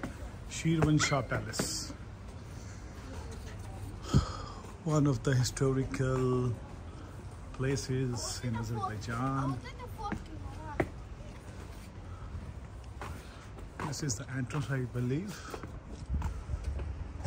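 Footsteps scuff on stone paving.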